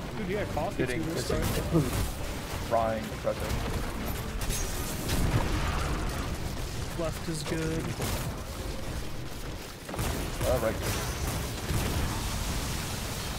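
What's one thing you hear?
Gunfire from a game weapon cracks and booms repeatedly.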